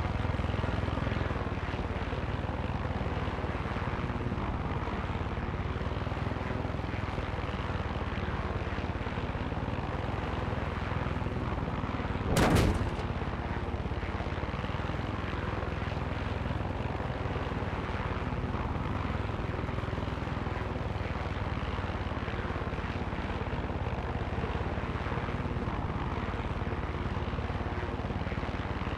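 A helicopter engine drones and its rotor thrums steadily throughout.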